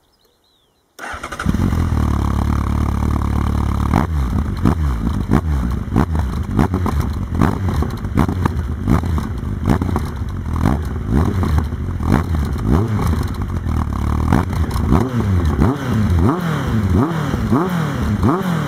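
A motorcycle engine starts up and idles with a deep, loud rumble.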